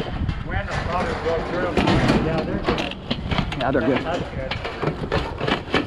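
A metal chair clatters against a pile of junk.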